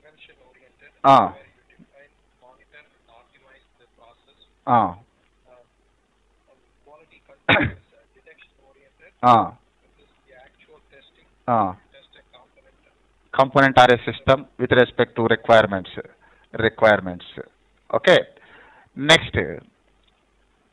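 A man speaks calmly and clearly into a microphone, in bursts with pauses.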